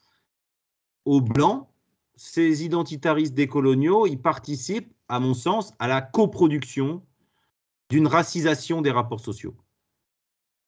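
An adult speaks calmly, heard through an online call.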